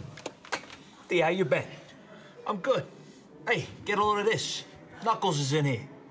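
A man speaks loudly through a phone handset.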